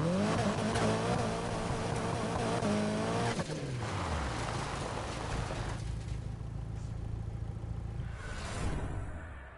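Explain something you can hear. A car engine revs loudly and roars.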